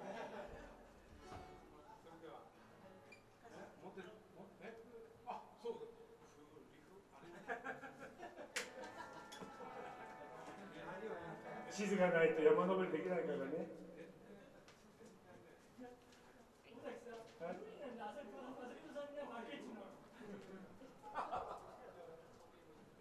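A small live band plays in a room.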